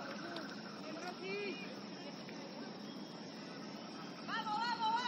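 Young women shout to each other from a distance outdoors.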